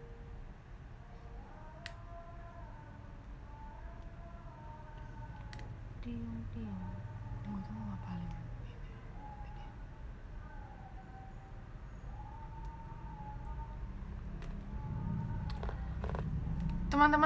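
A young woman sings softly, close to the microphone.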